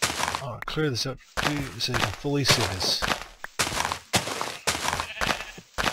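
A shovel crunches into dirt again and again.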